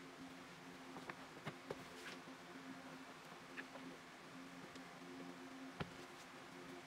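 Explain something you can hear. A soft plastic mat rustles and thumps as it is laid flat on a table.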